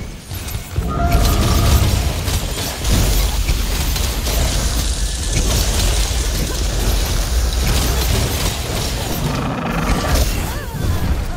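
Blades clash and strike a huge creature with sharp impacts.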